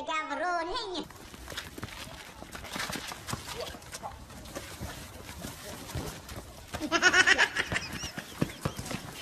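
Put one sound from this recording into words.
Feet scuffle and stamp on pavement during a struggle.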